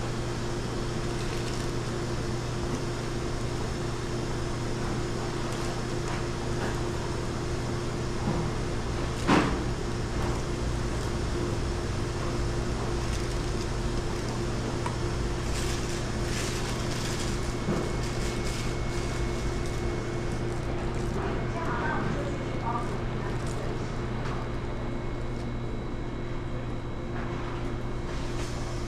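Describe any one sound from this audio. A steady machine hum fills the room.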